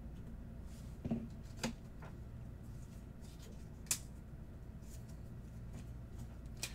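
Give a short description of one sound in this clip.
Plastic card cases click and tap as they are handled.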